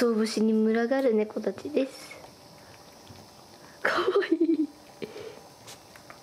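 Cats chew and lick at dry food close by.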